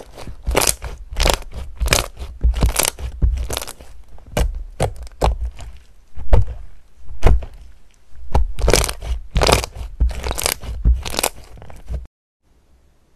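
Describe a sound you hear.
Slime squelches and pops wetly as hands squeeze and press it.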